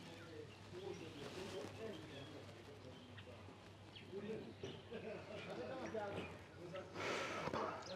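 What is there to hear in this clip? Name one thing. A young woman sobs quietly.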